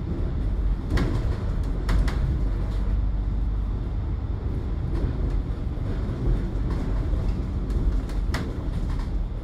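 A bus body rattles and knocks over bumps.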